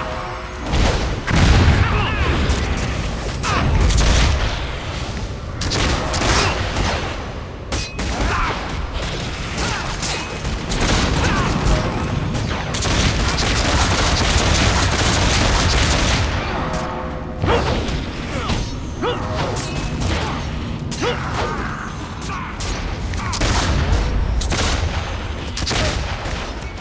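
Weapons clash and strike again and again.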